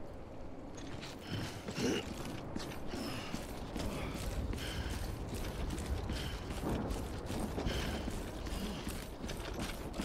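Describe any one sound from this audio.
Heavy footsteps thud on hard pavement.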